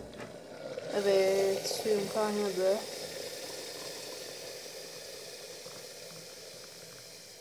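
Hot water pours from a kettle into a mug with a steady splashing trickle.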